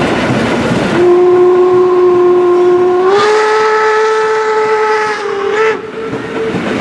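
A steam whistle blows loudly, rising slightly in pitch.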